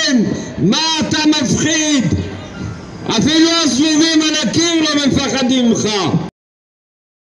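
A man sings loudly through a microphone and loudspeaker, outdoors.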